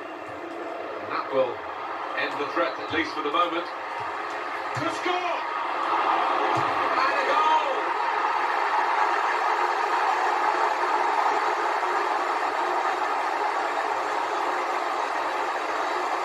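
A large stadium crowd roars and cheers, swelling loudly.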